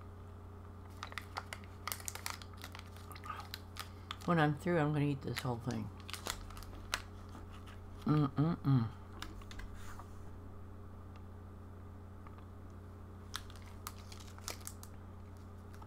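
A candy wrapper crinkles in a hand.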